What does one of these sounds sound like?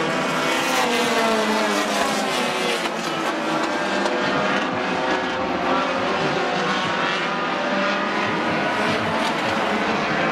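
Race car engines roar and whine around a track outdoors.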